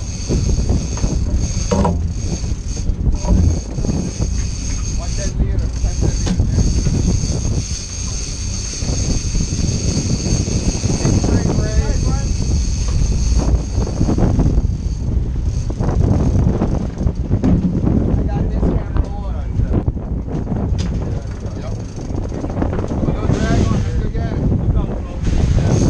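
A boat engine rumbles steadily.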